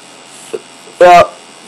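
A man speaks a brief, loud word close to a microphone.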